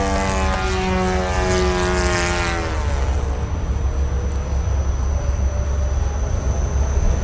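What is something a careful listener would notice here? Wind rumbles and buffets against a microphone outdoors.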